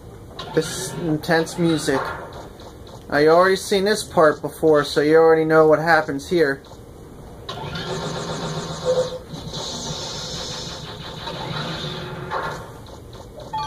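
Video game sounds and music play from a television speaker.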